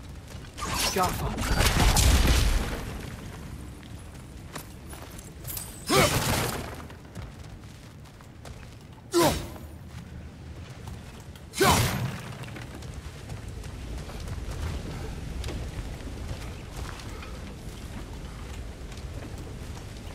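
Heavy footsteps crunch on rocky ground.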